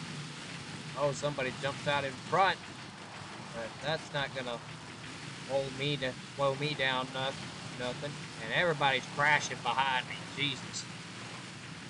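A young man speaks casually close to a microphone.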